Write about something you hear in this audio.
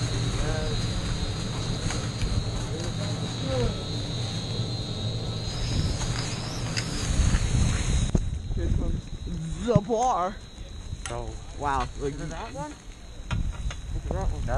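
A chairlift rumbles and clanks as it carries riders.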